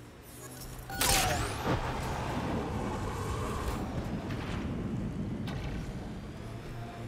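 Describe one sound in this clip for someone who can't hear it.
Tyres rumble and crunch over rough, rocky ground.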